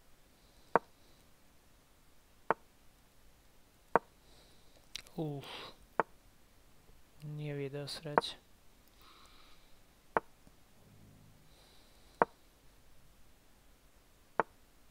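A sharp wooden click of a chess piece sounds with each move, every second or two.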